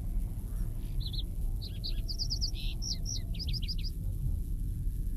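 Birds chirp in short bursts.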